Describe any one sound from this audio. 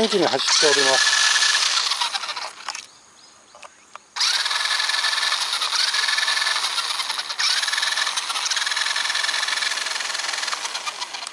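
Small tyres crunch and spray gravel.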